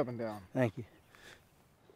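A man exclaims loudly nearby.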